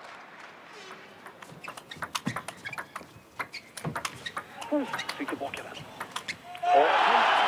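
A table tennis ball clicks back and forth on paddles and table in a quick rally.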